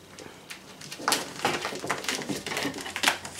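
A puppy yelps from inside a crate.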